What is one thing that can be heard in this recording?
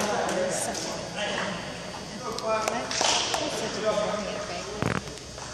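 Men talk at a distance in an echoing hall.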